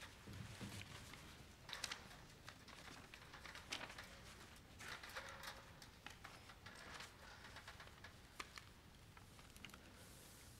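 Paper rustles and crinkles close to a microphone.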